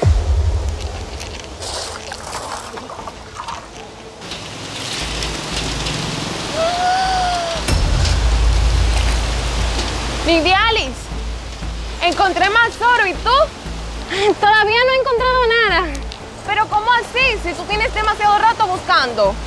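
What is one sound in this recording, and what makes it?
A stream flows and trickles steadily.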